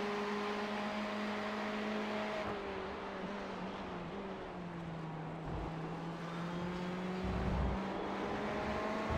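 A racing car engine roars steadily at high revs, its pitch shifting slightly through gear changes.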